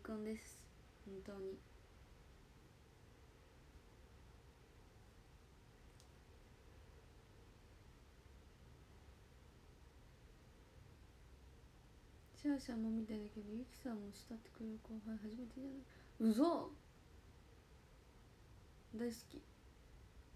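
A young woman speaks softly and casually, close by.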